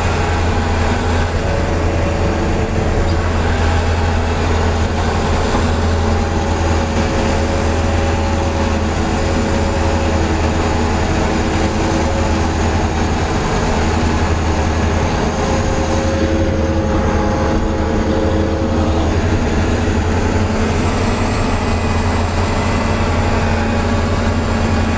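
A large articulated diesel tractor drones under load, heard from inside the cab.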